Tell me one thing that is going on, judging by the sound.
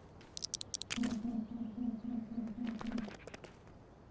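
Electronic menu beeps tick in quick succession.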